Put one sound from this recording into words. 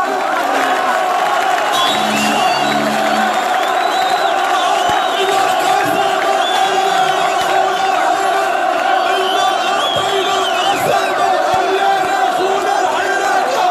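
A large crowd chants loudly and steadily outdoors.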